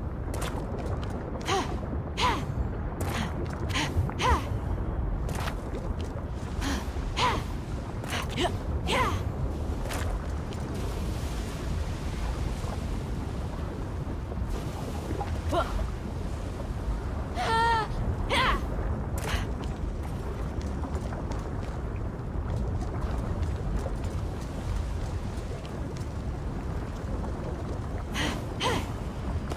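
Lava bubbles and rumbles low and steadily.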